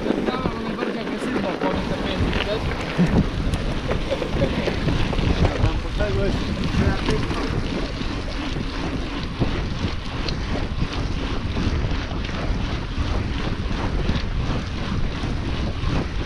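Bicycle tyres hum and rattle on a rough road.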